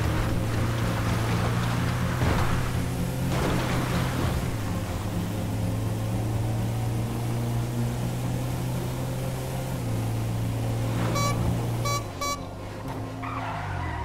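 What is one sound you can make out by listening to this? A van engine hums steadily as it drives along.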